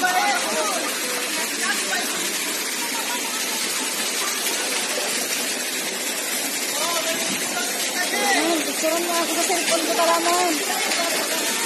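A young woman talks with animation nearby.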